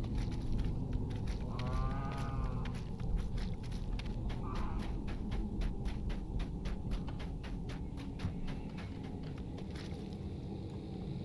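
Quick footsteps run over soft ground.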